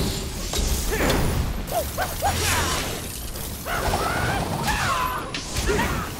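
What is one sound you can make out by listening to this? Fire crackles and bursts with sparks.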